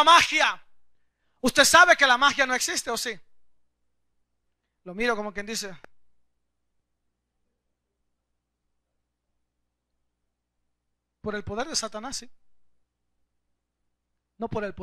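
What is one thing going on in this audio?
A man speaks with animation into a microphone, in bursts with long pauses.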